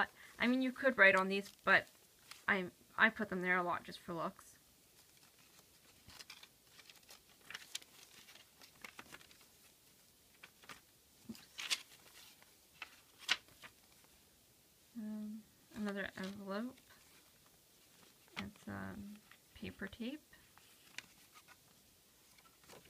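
Paper pages rustle and flip softly.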